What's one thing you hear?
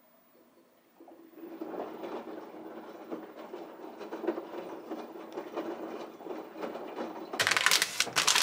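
A washing machine hums steadily as it runs.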